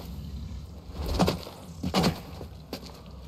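A character lands heavily with a thud.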